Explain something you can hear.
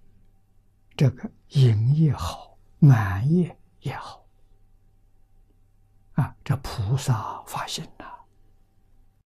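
An elderly man speaks calmly and with expression into a close microphone.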